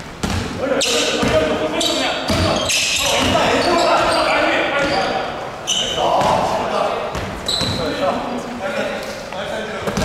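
Young men shout and call out to each other.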